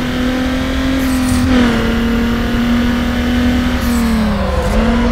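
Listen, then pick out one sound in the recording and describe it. A car engine roars steadily at high speed, its pitch shifting with gear changes.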